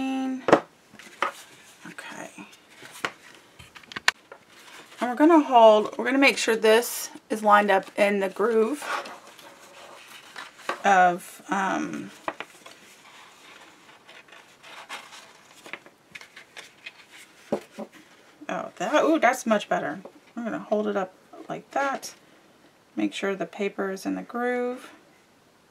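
Stiff paper rustles and taps softly as hands handle it.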